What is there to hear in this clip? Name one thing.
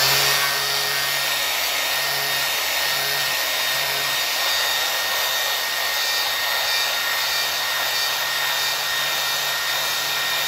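An angle grinder whines steadily as its disc sands a metal sheet.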